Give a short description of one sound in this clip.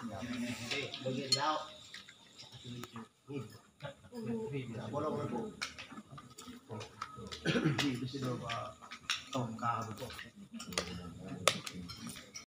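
Several men talk and chat nearby.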